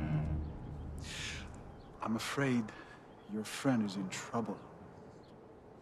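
A man speaks calmly and low, close by.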